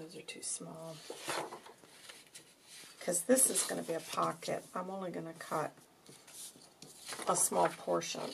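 Paper rustles and slides.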